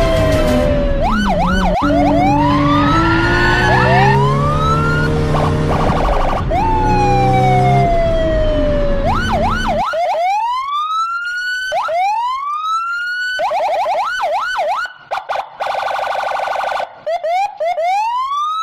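Police sirens wail in rising and falling sweeps.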